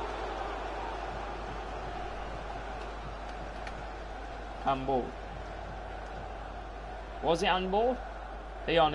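A large stadium crowd murmurs and cheers steadily in the distance.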